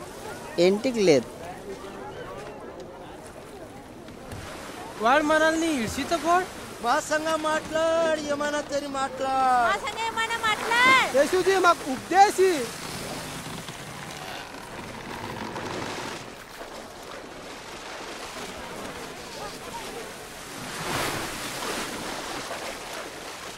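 Small waves lap and splash on a pebbly shore.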